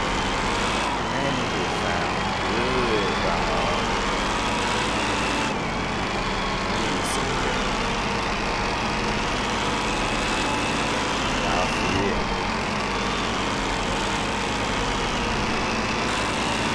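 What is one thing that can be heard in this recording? Tyres hiss on the road.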